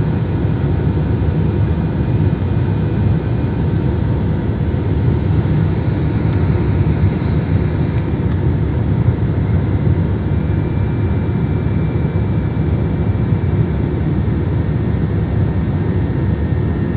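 Jet engines roar steadily, heard from inside an airliner cabin.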